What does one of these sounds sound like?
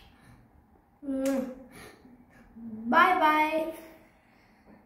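A young boy sings out loudly nearby.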